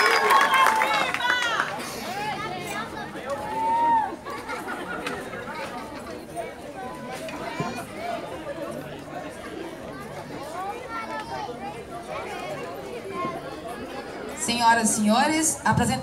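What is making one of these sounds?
A marching band's drums beat outdoors.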